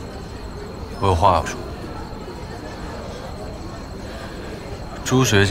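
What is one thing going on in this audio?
A young man speaks briefly and clearly, close by.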